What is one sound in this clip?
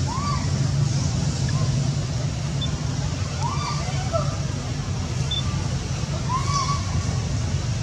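A baby monkey squeaks softly now and then.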